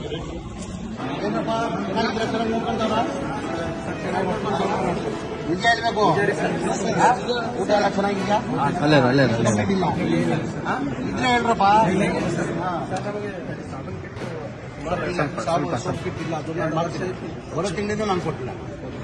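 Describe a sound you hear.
Several young men talk over one another close by.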